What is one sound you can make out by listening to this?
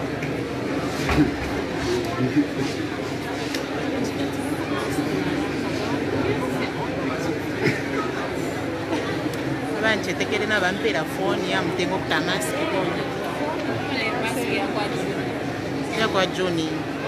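A choir of men and women sings together nearby in a large echoing hall.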